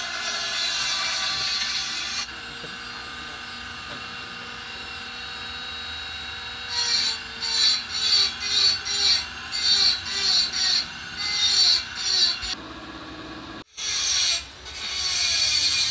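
A machine motor hums steadily as a wheel spins.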